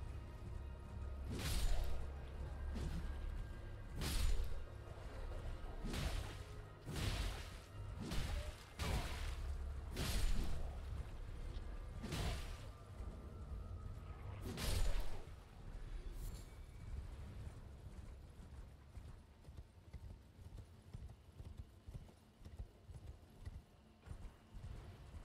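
Horse hooves gallop steadily over soft ground.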